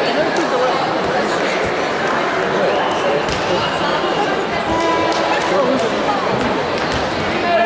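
Players' shoes squeak sharply on the court.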